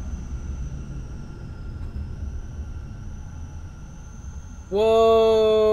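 A low swirling rumble of a magic spell roars.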